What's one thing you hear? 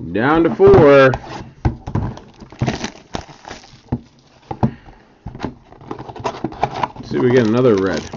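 A cardboard box slides and taps on a table.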